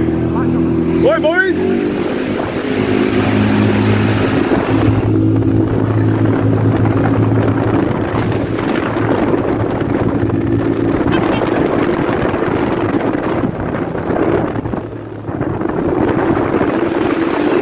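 A small engine hums steadily as a scooter rides along.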